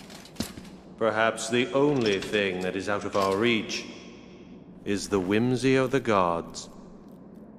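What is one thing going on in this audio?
A man speaks calmly in a smooth, theatrical voice.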